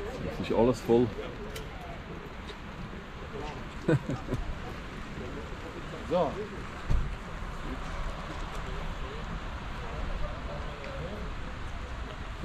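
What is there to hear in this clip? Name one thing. Car engines idle and hum nearby in slow traffic.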